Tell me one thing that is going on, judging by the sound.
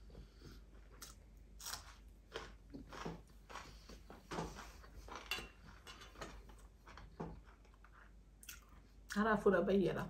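A woman chews and smacks her lips close by.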